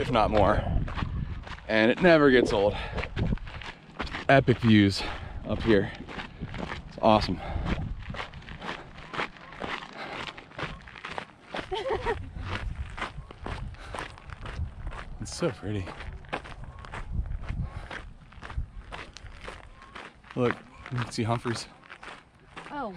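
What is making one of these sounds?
Footsteps crunch quickly on a gravel trail.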